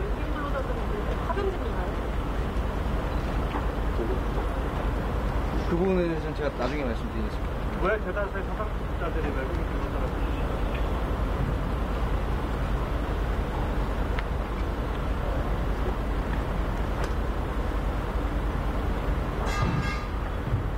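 A young man speaks calmly into microphones close by, outdoors.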